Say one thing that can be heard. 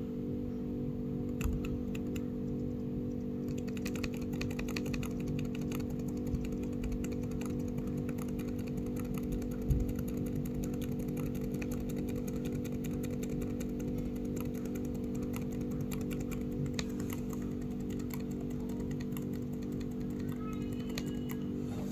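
A finger taps a laptop key over and over with soft clicks.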